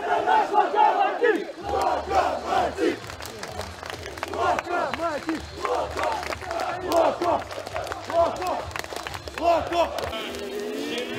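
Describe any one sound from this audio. A group of men chants and cheers together outdoors.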